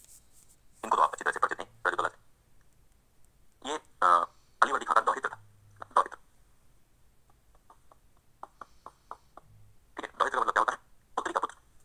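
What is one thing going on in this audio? A man speaks with animation in a lecturing tone, close by.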